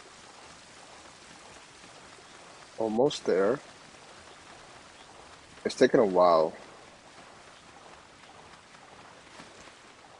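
Water rushes and churns steadily.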